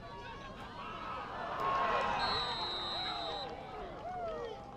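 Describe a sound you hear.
A crowd of spectators cheers loudly outdoors.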